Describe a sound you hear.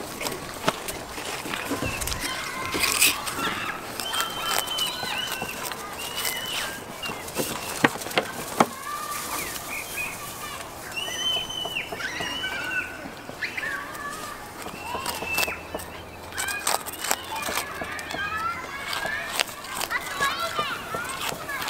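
A young goat's hooves tap and scrape on a plastic sheet.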